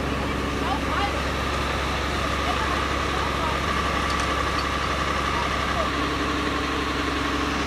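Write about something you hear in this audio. Water hisses from fire hoses.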